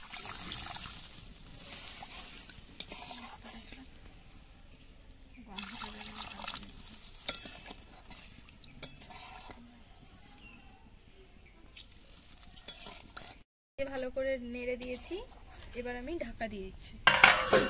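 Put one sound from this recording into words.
A metal spoon stirs and scrapes against a metal pan.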